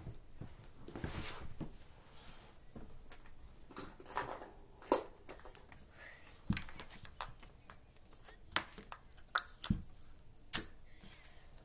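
A stiff card rustles and taps as fingers handle it.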